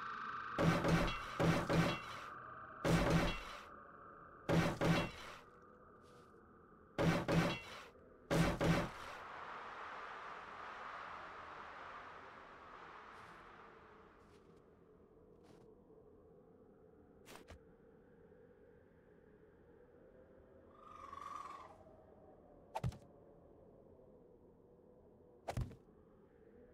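Heavy blocks knock into place several times.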